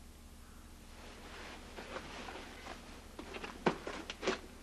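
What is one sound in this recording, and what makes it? Clothes rustle and feet scuff as children crawl across a floor.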